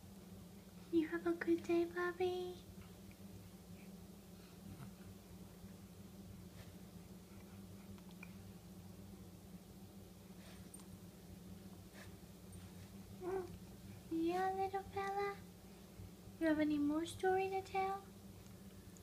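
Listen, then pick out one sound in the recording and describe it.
A baby coos and babbles close by.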